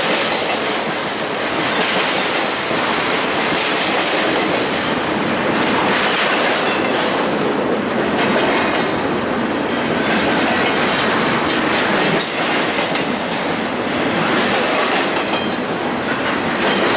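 Steel wheels squeal and screech on the rails.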